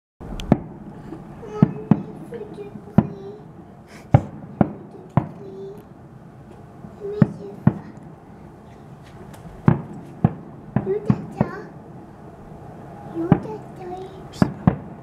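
Fireworks burst with loud bangs and pops, some far off and echoing.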